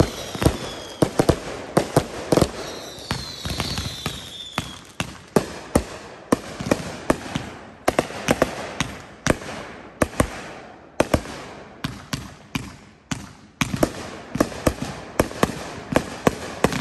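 Firework sparks crackle overhead.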